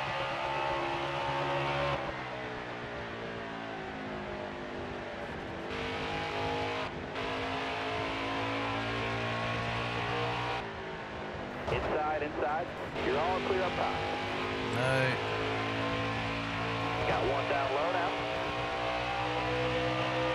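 Racing car engines roar steadily, rising and falling in pitch.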